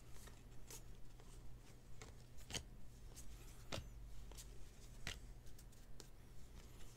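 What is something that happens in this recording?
Trading cards flick and slide against each other as they are shuffled by hand.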